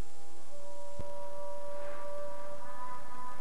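Television static hisses loudly.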